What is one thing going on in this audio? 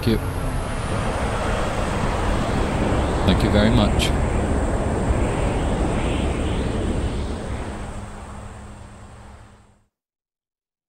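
An aircraft's engines roar loudly as it flies low overhead and fades away.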